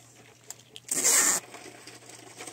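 Sticky tape is pulled off a roll with a rasping rip.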